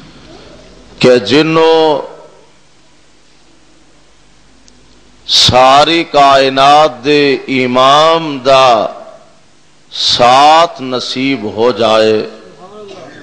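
A man preaches into a microphone in long, sung phrases, heard through a loudspeaker.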